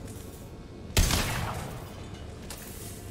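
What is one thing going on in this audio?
A sharp blast rings out and trails off in a crackle.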